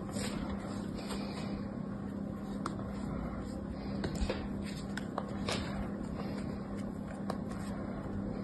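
Fingers press and rub soft sand with quiet scratchy crunching.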